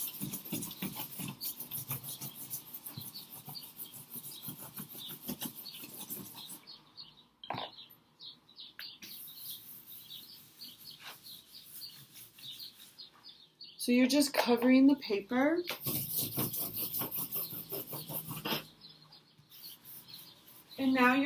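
Charcoal scratches and rubs against paper in quick strokes.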